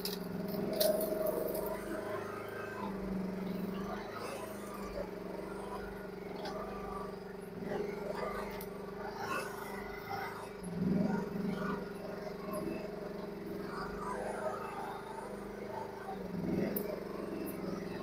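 A digger's hydraulics whine as its arm moves.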